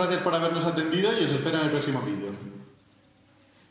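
A young man speaks with animation close by.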